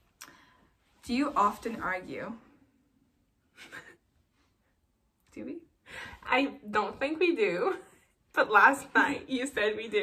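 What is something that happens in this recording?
A second young woman talks and laughs nearby.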